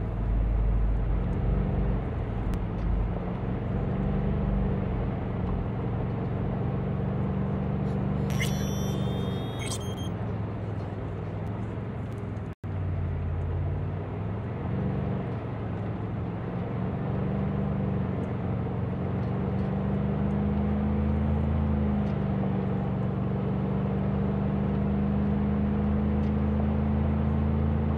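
A car engine hums steadily, rising and falling in pitch as the car drives.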